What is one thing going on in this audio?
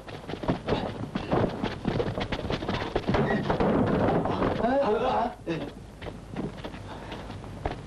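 Footsteps run across wooden boards.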